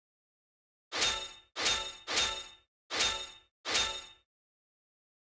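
Short game chimes sound one after another.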